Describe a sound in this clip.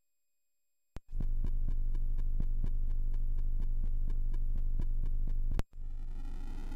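A retro video game hums with a steady, low electronic buzz.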